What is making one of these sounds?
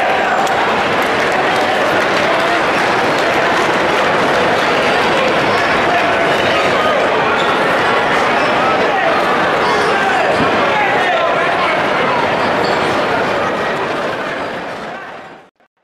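A crowd in a large echoing arena cheers and chatters loudly.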